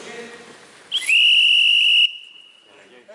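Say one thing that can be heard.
A referee's whistle blows one long shrill blast.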